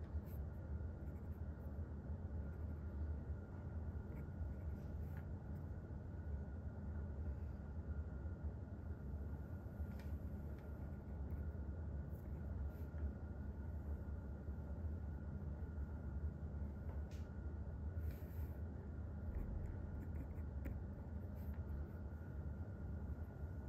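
A pen scratches and taps softly on paper.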